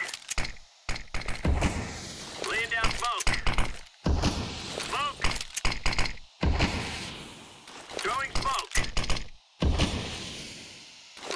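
A smoke grenade hisses loudly as it releases smoke.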